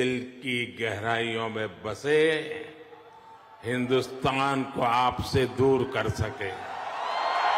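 An elderly man speaks with emphasis into a microphone in a large hall.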